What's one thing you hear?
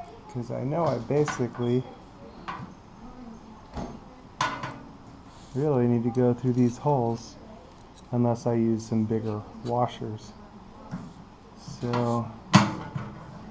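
Small metal parts click and clink as they are fitted together.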